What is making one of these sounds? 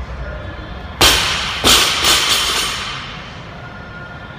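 A loaded barbell crashes onto the floor and bounces, ringing in a large echoing hall.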